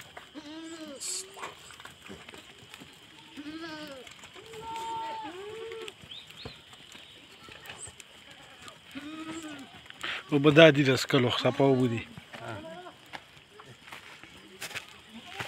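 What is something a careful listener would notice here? Goats bleat repeatedly nearby.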